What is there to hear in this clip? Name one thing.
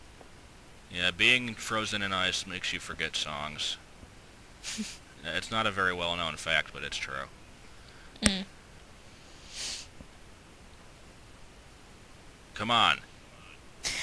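Short musical notes play a simple tune.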